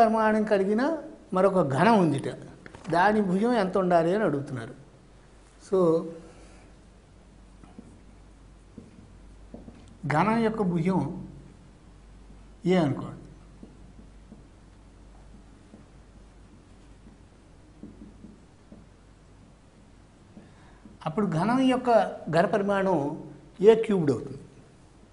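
An elderly man speaks calmly and clearly into a microphone, explaining at a steady pace.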